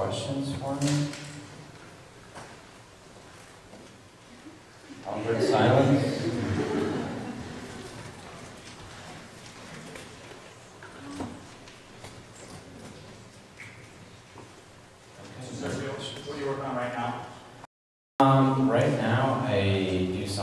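A man speaks calmly into a microphone, heard through loudspeakers in a large room.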